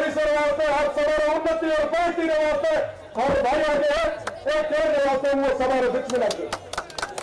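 A young man shouts passionately through a microphone over loudspeakers.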